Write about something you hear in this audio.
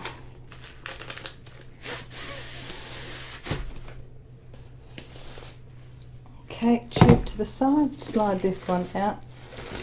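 A stiff paper roll rustles as hands roll it over a hard surface.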